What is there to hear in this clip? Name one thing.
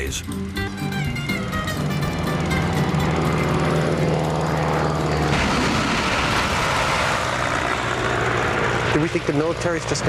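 A propeller airplane engine roars loudly.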